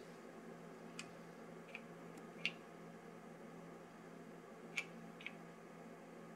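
Buttons click softly as a finger presses them.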